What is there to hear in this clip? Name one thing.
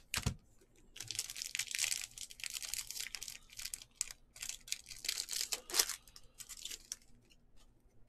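A foil wrapper crinkles and tears as a card pack is ripped open.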